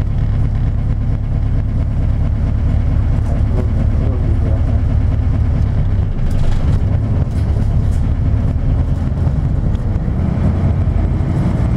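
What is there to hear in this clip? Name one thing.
A vehicle engine rumbles low and steadily, heard from inside the vehicle.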